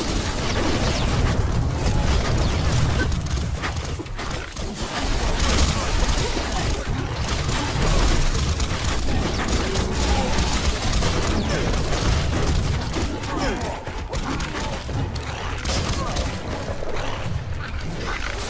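Weapons strike and thud in rapid blows.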